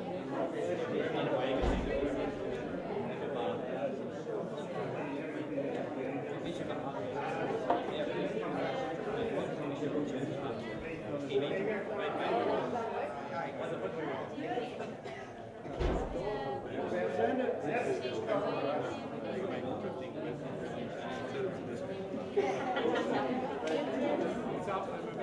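A crowd of men and women chatter around a room.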